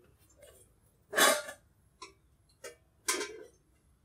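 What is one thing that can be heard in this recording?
A metal pot clanks on a stove.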